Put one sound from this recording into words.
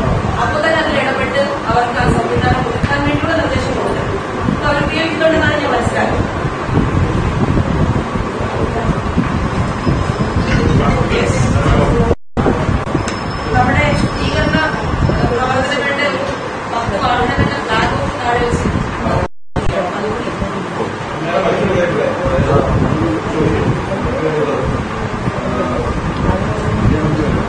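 A young woman speaks steadily into microphones.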